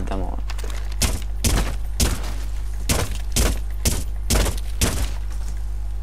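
A rifle fires in short, sharp bursts.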